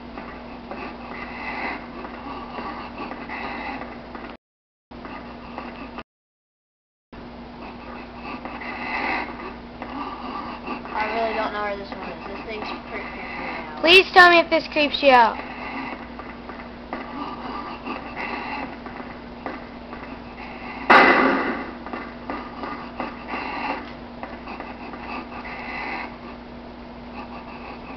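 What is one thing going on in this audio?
Footsteps tread on a hard floor, heard through a small television speaker.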